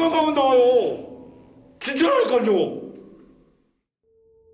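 A young man speaks in a startled, excited voice close by.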